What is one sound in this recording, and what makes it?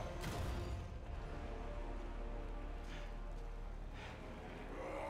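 Heavy debris crashes and clatters nearby.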